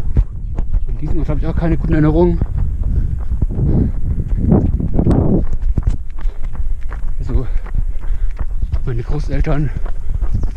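A man speaks breathlessly close by.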